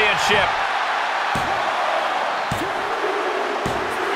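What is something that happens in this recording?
A referee slaps the mat with a hand in a count.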